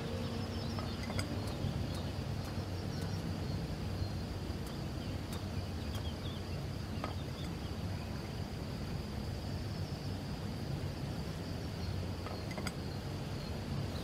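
A ceramic plate is set down on a wooden table.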